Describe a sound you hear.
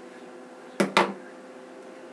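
A hair clip snaps shut.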